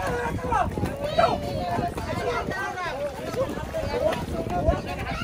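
Water splashes as a young girl kicks her legs while swimming.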